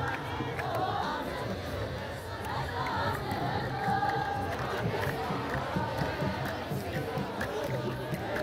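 A large crowd chants and sings together outdoors.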